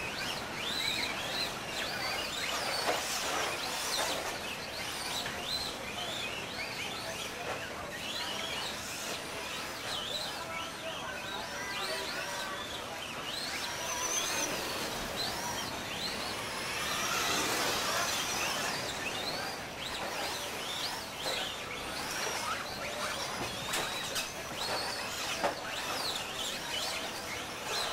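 Small tyres crunch and scrape over dirt.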